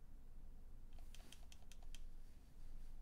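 A video game ball wobbles and clicks shut a few times.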